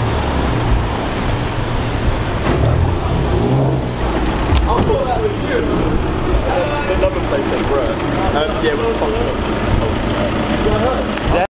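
A car engine idles with a deep, throaty rumble.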